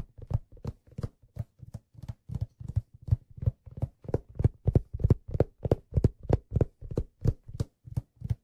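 A hand drum is struck close by in a fast, steady rhythm.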